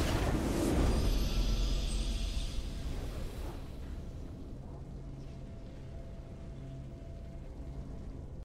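A triumphant fanfare swells and then fades.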